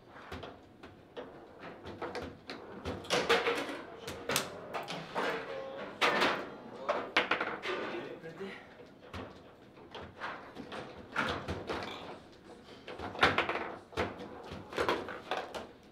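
A foosball ball knocks sharply against plastic players and the table walls.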